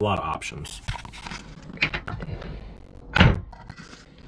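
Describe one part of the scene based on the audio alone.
A wooden cabinet door thumps shut.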